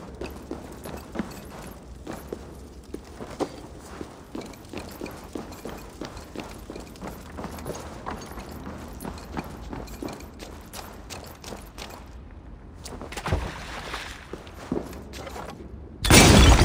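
Footsteps thud softly on stone and wooden floors.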